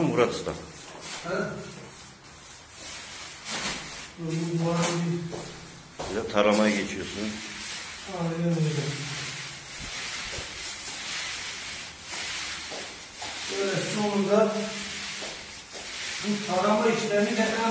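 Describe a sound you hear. A man talks nearby in a casual voice.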